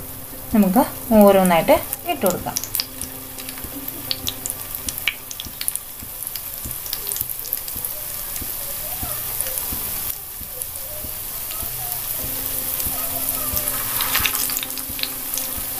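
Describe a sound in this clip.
Dough patties drop into hot oil with a sharp hiss.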